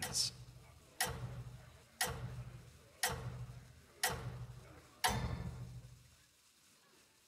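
Heavy magical thuds land one after another at a steady pace.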